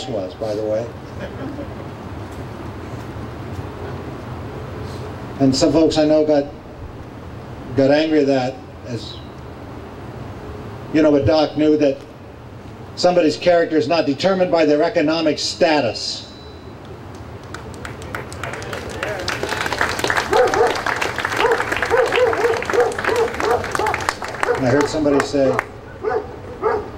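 An elderly man speaks slowly and with feeling into a microphone outdoors.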